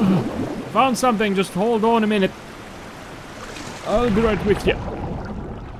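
A young woman talks excitedly into a microphone.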